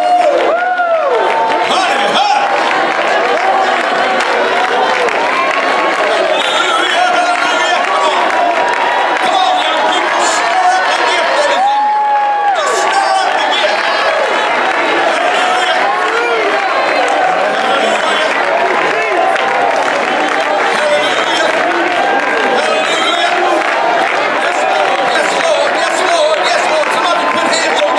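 A crowd of men and women sings loudly together in a large echoing hall.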